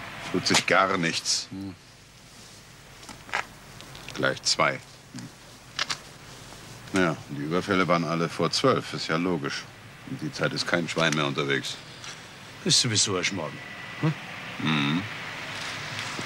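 Two middle-aged men talk calmly, close by.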